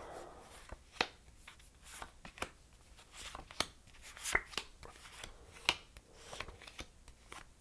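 Playing cards are laid down on a soft cloth with light taps.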